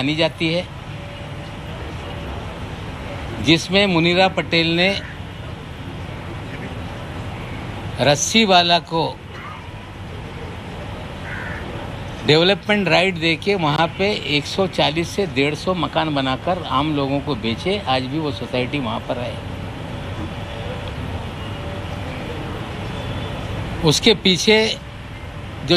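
A middle-aged man speaks into a microphone, talking in bursts with pauses.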